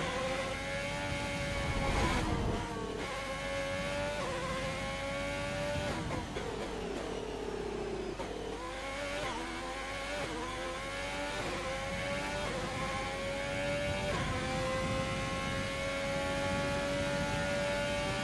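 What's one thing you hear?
A racing car engine screams at high revs, rising through the gears and briefly dropping while braking for a corner.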